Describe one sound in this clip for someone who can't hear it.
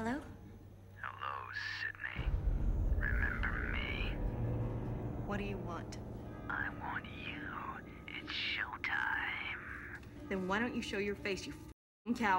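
A young woman speaks tensely into a phone, close by.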